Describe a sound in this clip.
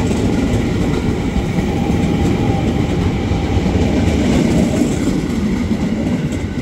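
A train rumbles and clatters past close by on the tracks.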